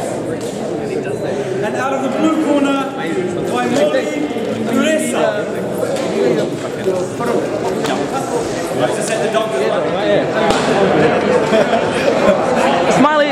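A crowd of people chatters in an echoing room.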